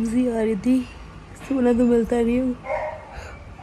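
A young woman whines in a high, drawn-out voice close by.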